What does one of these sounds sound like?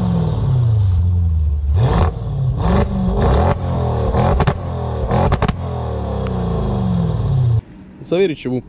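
A powerful car engine idles with a deep burbling exhaust and revs up sharply several times.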